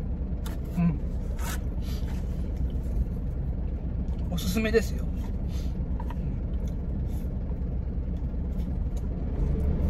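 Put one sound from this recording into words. A man chews and slurps food.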